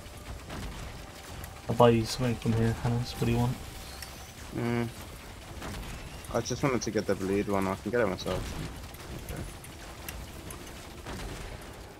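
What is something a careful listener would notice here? Sci-fi guns fire in quick bursts of shots.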